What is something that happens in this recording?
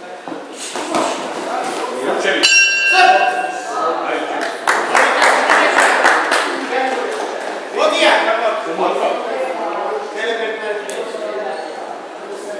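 Men talk and call out loudly in a large echoing hall.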